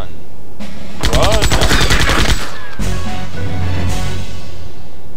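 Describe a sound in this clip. Weapons clash and strike in a short fight.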